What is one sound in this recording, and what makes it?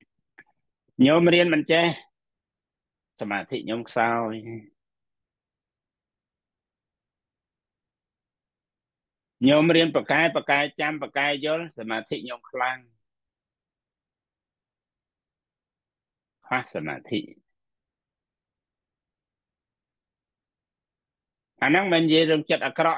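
A middle-aged man speaks calmly in short phrases over an online call, with pauses between them.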